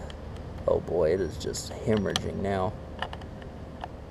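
A wrench clicks against a metal bolt.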